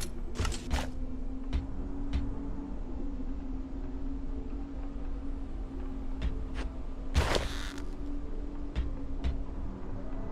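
Soft menu clicks sound as items are selected.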